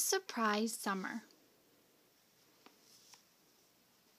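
A book's cover is turned over with a soft rustle.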